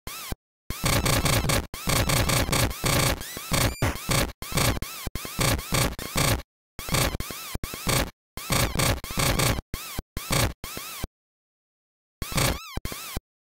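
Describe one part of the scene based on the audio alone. Harsh electronic game blasts crackle in quick, choppy bursts.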